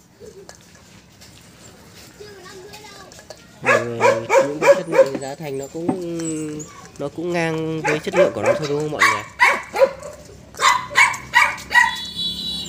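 A small dog chews and squeaks a rubber toy.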